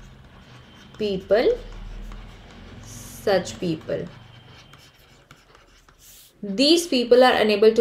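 A young woman speaks calmly and clearly into a close microphone, in short phrases with pauses.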